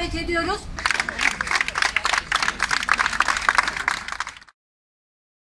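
A crowd claps in rhythm outdoors.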